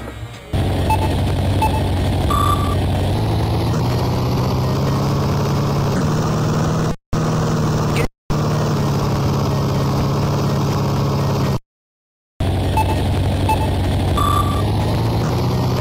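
Short electronic beeps count down before the race starts.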